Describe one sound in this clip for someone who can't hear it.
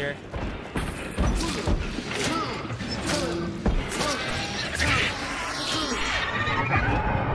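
Heavy blows land in a close fight.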